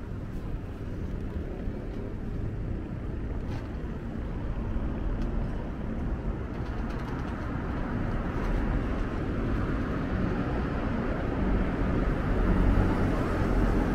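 City traffic rumbles steadily in the street.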